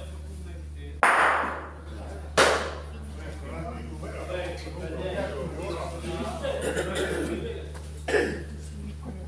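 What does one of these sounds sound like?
Heavy bowling balls knock sharply against each other.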